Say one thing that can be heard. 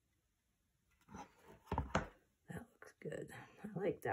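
A wooden frame knocks softly against a table.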